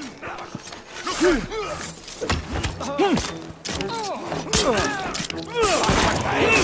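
Punches land with heavy thuds in a brawl.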